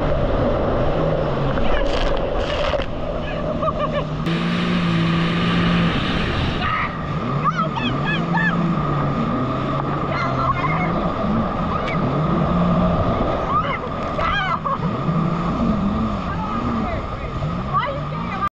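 A jet ski engine drones and revs up and down.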